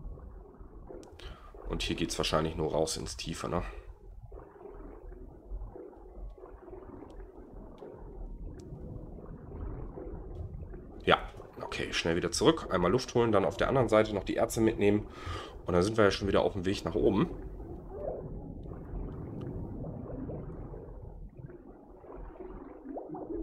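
Muffled water swirls and bubbles around a swimmer underwater.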